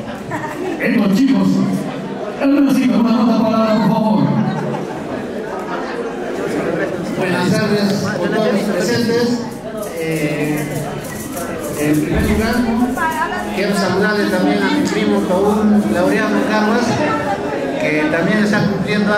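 A middle-aged man speaks with animation into a microphone over a loudspeaker.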